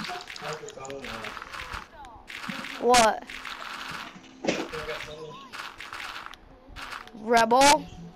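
Blocks of dirt crunch repeatedly as they are dug away.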